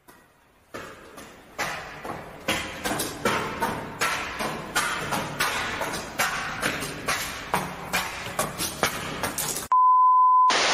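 Footsteps echo on pavement in a tunnel as a man walks closer.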